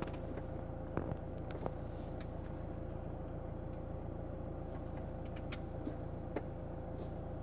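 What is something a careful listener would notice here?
A finger taps on a car's touchscreen.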